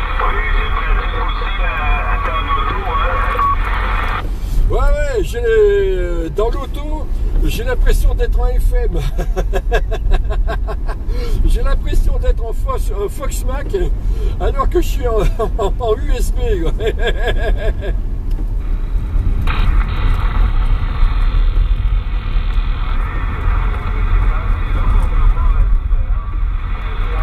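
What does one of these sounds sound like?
A car engine hums low and steady while driving.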